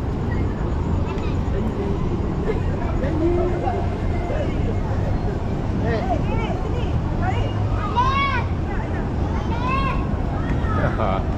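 A crowd of people chatters outdoors in a steady murmur.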